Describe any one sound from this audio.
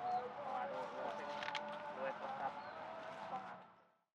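A man talks calmly outdoors.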